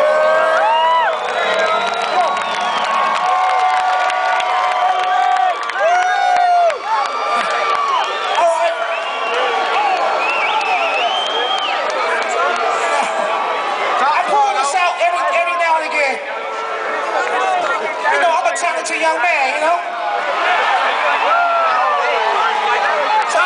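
Live music plays loudly through big speakers in a large hall.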